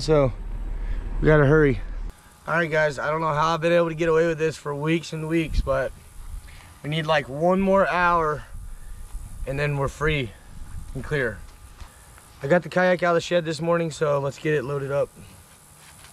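A young man talks with animation close by, outdoors.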